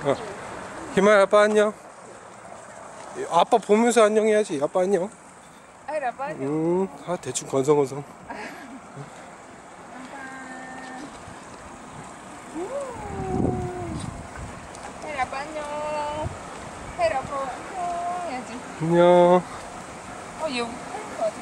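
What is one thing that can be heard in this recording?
A young child talks and babbles nearby.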